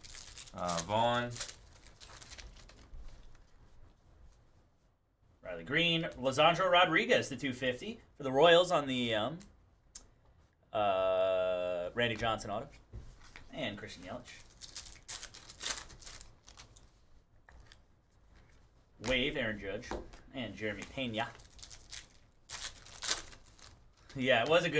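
A foil wrapper crinkles and tears as a card pack is opened.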